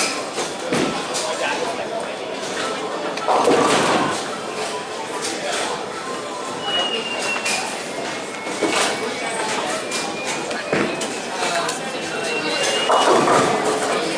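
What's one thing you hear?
Distant pins crash and balls rumble in a large echoing hall.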